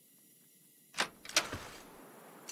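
A wooden door bangs shut.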